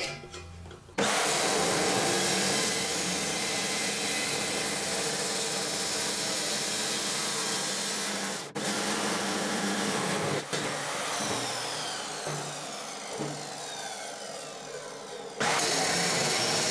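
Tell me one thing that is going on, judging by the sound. A chop saw grinds loudly through steel.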